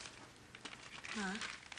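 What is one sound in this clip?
Another woman answers in a tense voice.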